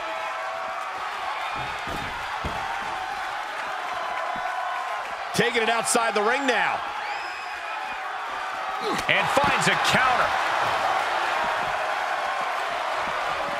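A large crowd cheers steadily.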